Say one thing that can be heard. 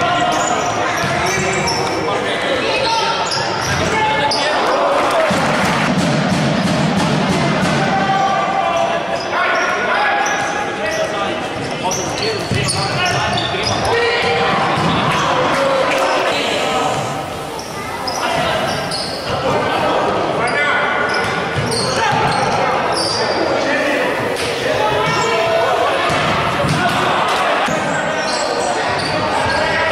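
A ball thuds as players kick it in an echoing hall.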